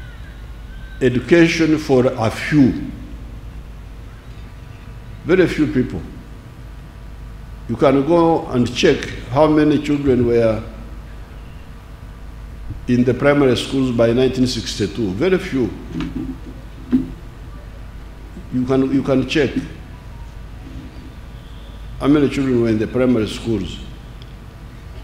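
An elderly man speaks slowly through a microphone and loudspeakers, in short phrases with long pauses.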